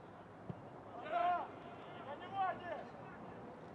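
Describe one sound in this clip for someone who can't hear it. Men shout across an open field.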